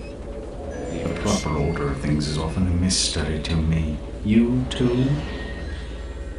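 A man talks close to a microphone.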